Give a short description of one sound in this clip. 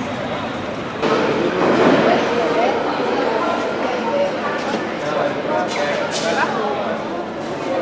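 A metro train rumbles into an echoing station.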